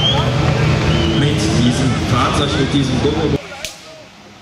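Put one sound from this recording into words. Men and women chat nearby outdoors.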